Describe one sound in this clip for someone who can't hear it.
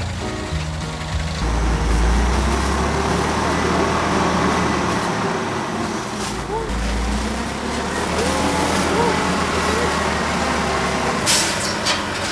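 A truck engine rumbles and idles nearby.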